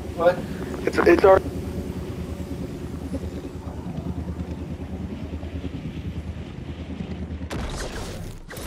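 A low steady whoosh of a game character flying through the air.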